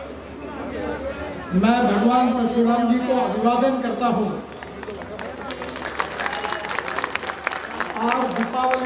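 A man speaks forcefully through a loudspeaker system.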